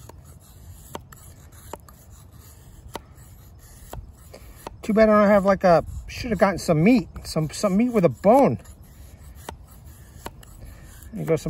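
A knife shaves and scrapes wood in short strokes.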